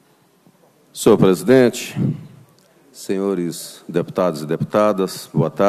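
A man speaks loudly and with emphasis through a microphone and loudspeakers.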